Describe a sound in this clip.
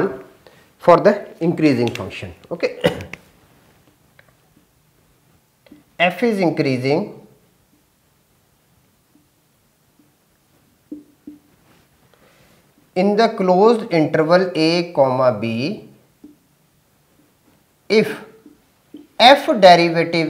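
A man lectures calmly, speaking in short bursts with pauses.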